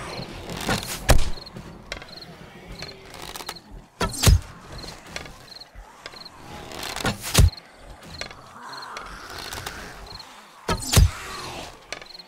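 A gun fires single loud shots every few seconds.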